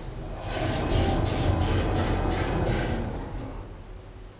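Lift doors slide open with a rattling rumble.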